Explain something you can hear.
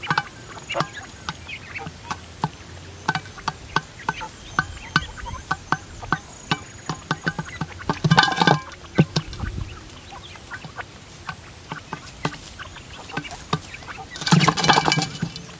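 Small birds peck rapidly at grain on a metal tray.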